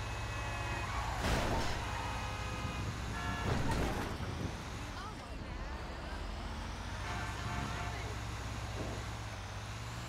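A truck engine rumbles steadily as it drives.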